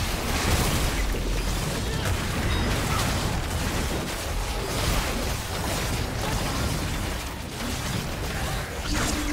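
Magical blasts and combat hits crackle and boom rapidly in a fierce fight.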